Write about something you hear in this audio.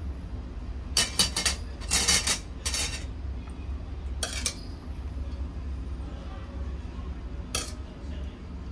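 A metal ladle clinks and scrapes against an aluminium pot.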